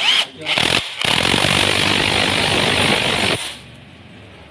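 An impact wrench whirs loudly against a bolt.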